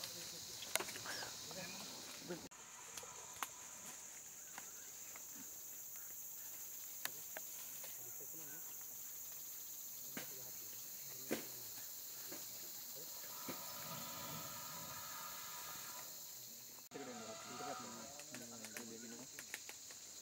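Twigs snap and crackle as a large animal pushes through undergrowth.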